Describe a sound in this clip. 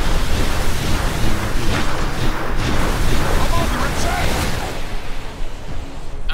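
Video game spell effects whoosh and crackle in quick bursts.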